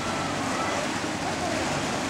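Water splashes as a bather moves through it.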